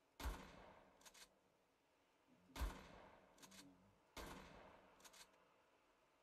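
A shotgun is pumped with a clack after each shot.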